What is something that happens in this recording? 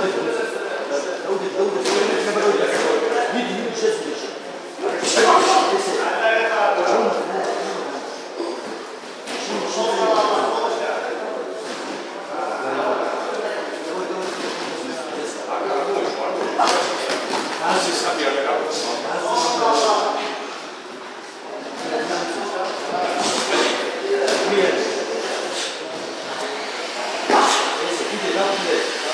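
Boxing gloves thud against gloves and bodies.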